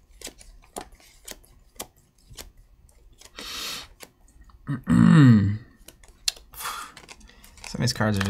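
Playing cards click and slide against each other as they are handled.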